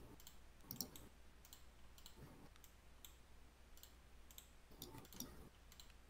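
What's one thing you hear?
Soft game clicks sound as items are moved around.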